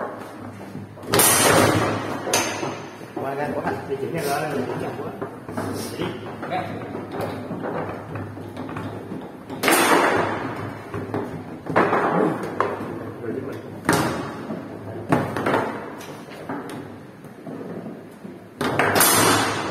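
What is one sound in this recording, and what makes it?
Foosball rods rattle and thud as they are spun and slid.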